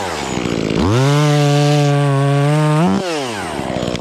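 A chainsaw cuts through wood.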